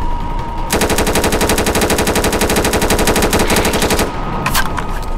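A gun fires in a rapid automatic burst.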